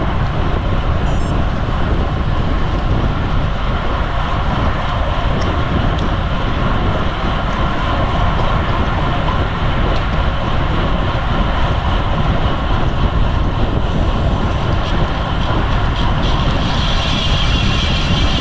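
Wind rushes loudly past the microphone outdoors.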